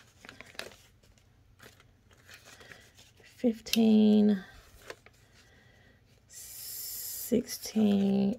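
Paper banknotes rustle and flap as they are handled.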